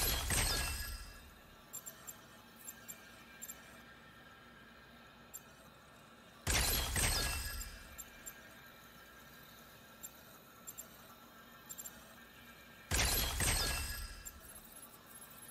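A bright electronic whoosh sounds each time a game piece bursts.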